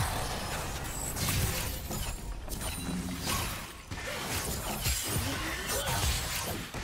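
Spell effects whoosh and crackle in a fast game fight.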